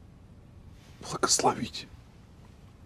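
A man speaks in a low, hushed voice close by.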